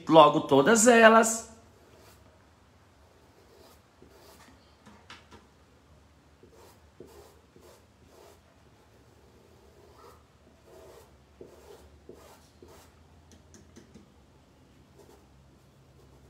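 A brush dabs and brushes softly on cloth.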